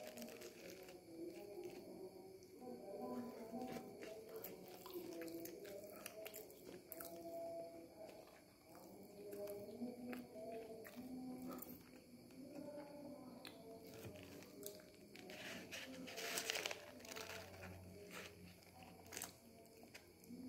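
A young man bites and chews food close by.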